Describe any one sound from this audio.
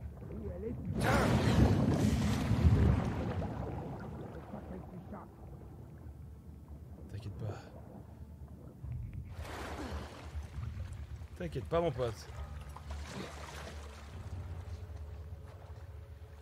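Water splashes and sloshes as someone swims.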